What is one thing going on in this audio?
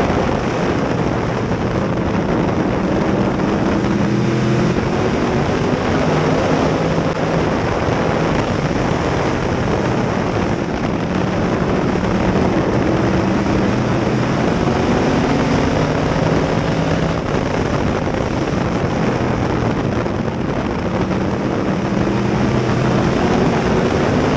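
A race car engine roars loudly from inside the cockpit, revving up and down.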